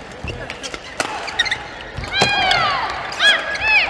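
Shuttlecock hits from rackets make sharp pops in a large echoing hall.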